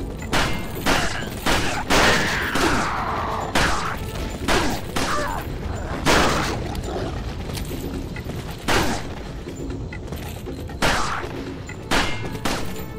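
Gunshots ring out one after another with a short echo.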